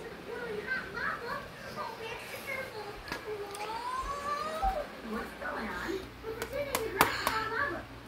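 A plastic game case clicks as a hand handles it.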